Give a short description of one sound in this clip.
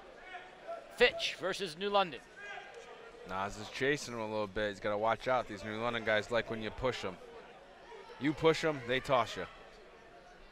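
A man shouts loudly from nearby spectators.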